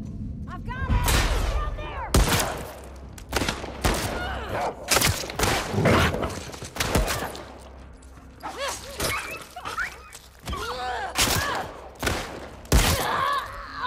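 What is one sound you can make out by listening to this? Gunshots ring out loudly in a house.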